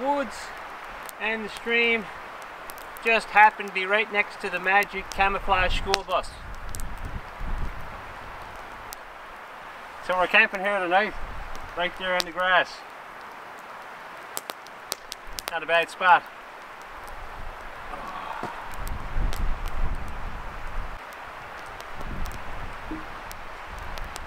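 A small campfire crackles.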